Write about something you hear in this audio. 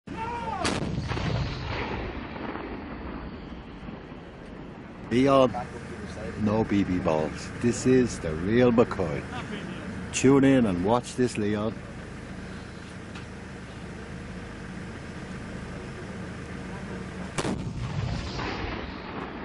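A cannon fires with a heavy boom that rolls away outdoors.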